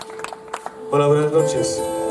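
A man sings loudly into a microphone.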